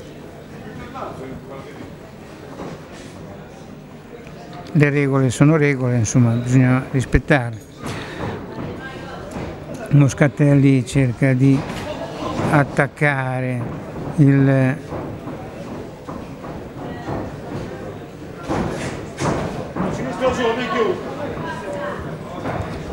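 A crowd murmurs softly in a large hall.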